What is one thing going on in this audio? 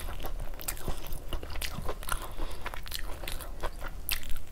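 Fingers squelch and mix soft rice and gravy.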